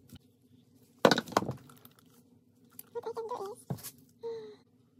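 Plastic containers knock and clatter against a hard surface.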